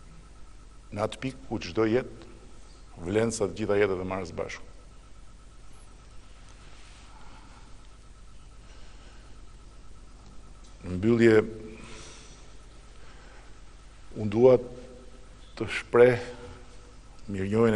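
A middle-aged man speaks calmly into a microphone, with long pauses between phrases.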